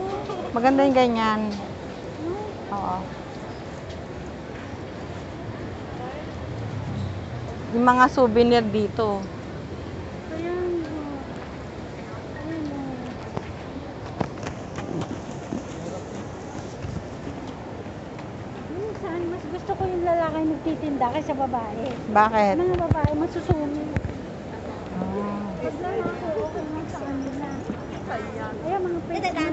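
A young woman talks close by, casually.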